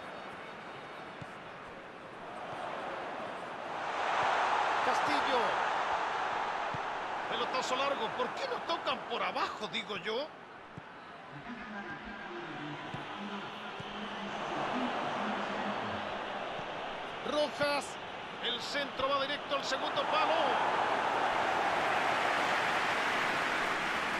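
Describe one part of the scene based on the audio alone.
A stadium crowd roars and swells in waves.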